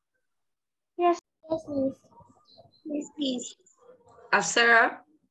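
A young girl reads aloud through an online call.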